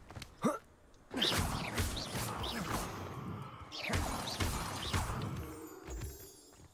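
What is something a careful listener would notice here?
A magic spell crackles and bursts with a loud whoosh.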